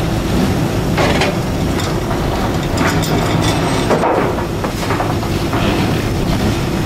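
Wooden crates knock and scrape against each other.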